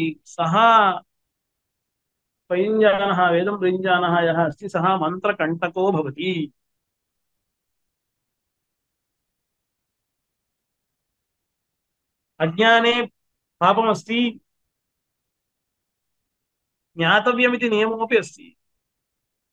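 A man speaks calmly and closely into a microphone, with long pauses.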